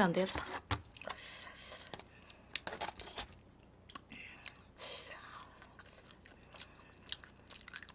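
Foil crinkles as food is picked from it.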